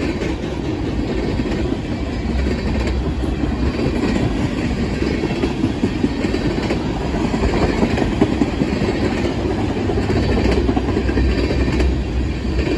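A freight train of tank cars rumbles past close by.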